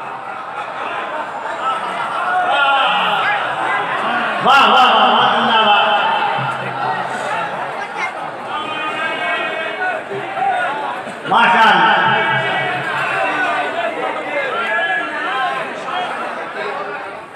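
A crowd of men murmurs and calls out.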